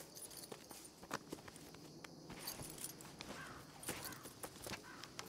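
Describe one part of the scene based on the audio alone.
Horse hooves shuffle and thud on dry ground.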